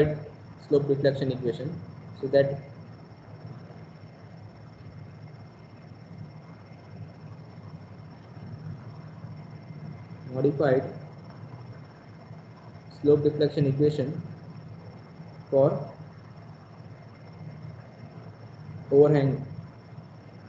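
A man speaks calmly through a microphone in short phrases with long pauses.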